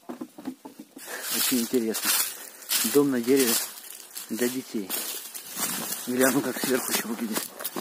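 A young man speaks close by with animation.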